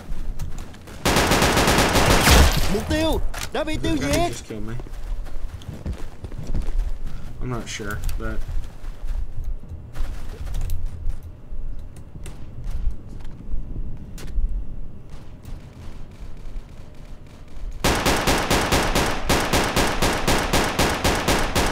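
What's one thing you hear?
A rifle fires rapid bursts of shots.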